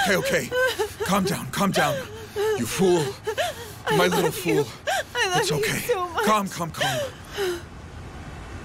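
A young woman sobs and cries out close by.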